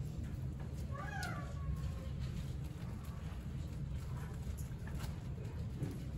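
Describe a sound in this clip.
Low murmuring and shuffling of a congregation fills a large room.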